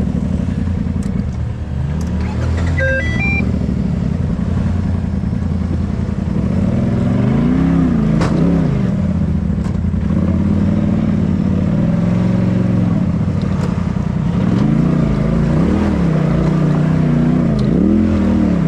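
Rocks knock against the underside of a vehicle.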